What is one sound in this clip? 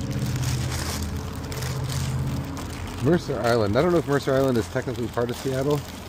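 A plastic cover rustles.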